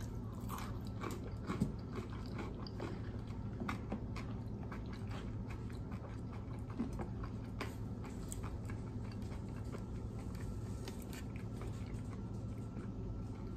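A woman chews food with her mouth closed, close to a microphone, with soft wet smacking sounds.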